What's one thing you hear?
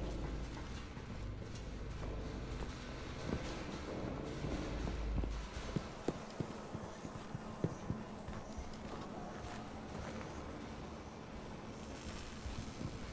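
Footsteps clank on metal flooring.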